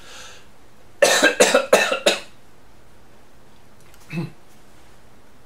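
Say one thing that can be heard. A man speaks close by in short, loud bursts.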